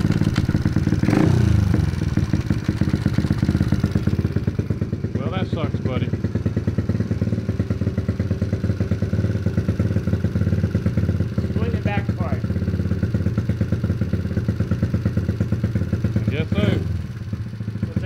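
A small motorbike engine revs up sharply a few times and drops back.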